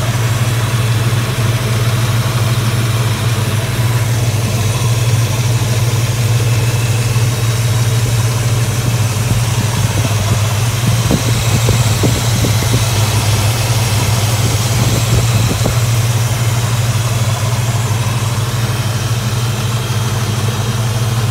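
A car engine idles with a steady, deep rumble close by.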